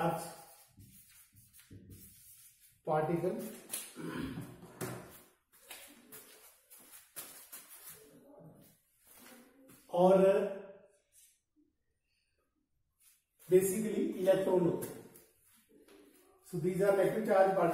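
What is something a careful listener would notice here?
A middle-aged man lectures in a slightly echoing room.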